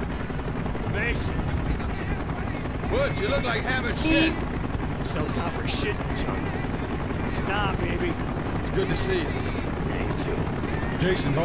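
Men talk to each other.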